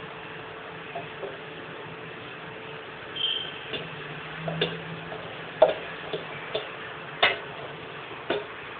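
A ladle scrapes and knocks against a metal pot.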